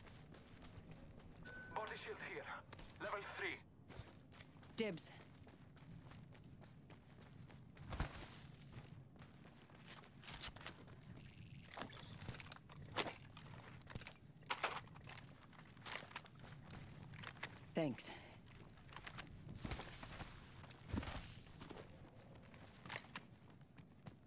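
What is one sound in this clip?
Footsteps patter quickly over dirt and sand.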